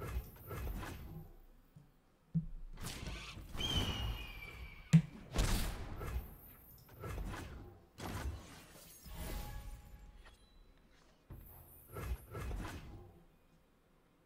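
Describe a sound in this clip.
Game sound effects whoosh and chime as cards are played.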